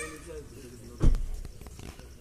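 A dull thump sounds from a car.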